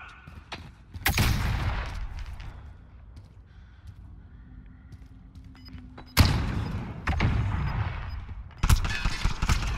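A rifle fires with a loud crack that echoes.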